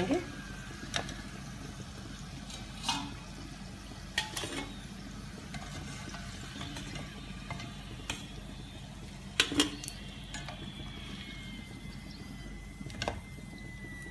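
A metal slotted spoon clinks against a pan.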